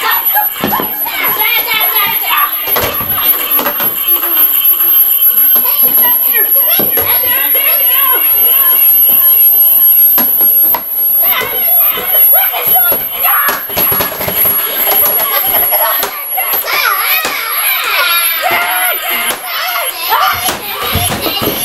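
Plastic toys knock and rattle.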